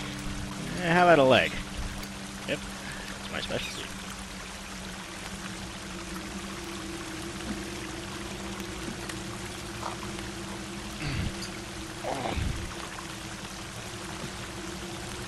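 A campfire crackles steadily.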